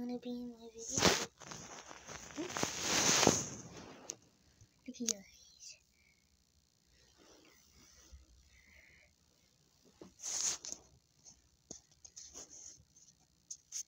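Fur and a soft blanket rustle and brush close by.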